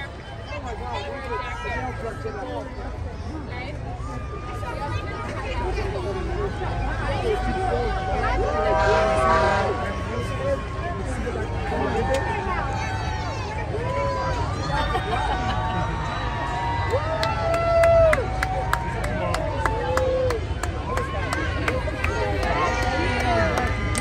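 A crowd of people chatter and shout outdoors.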